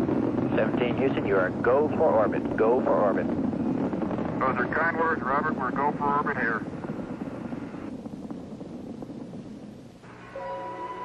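A rocket engine roars with a deep, steady rumble that slowly fades.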